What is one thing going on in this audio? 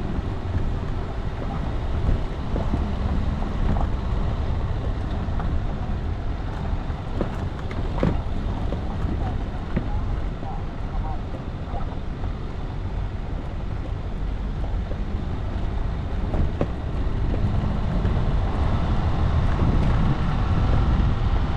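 A vehicle's body rattles and knocks over bumps.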